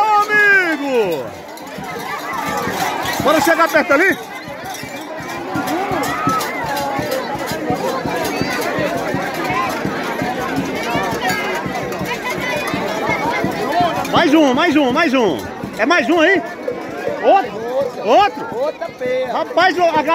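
A large crowd chatters and shouts outdoors.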